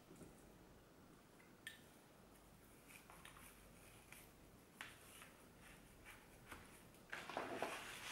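Leaves and stems rustle softly as flowers are pushed into an arrangement.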